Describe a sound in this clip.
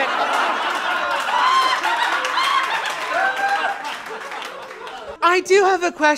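A lively crowd cheers and whoops.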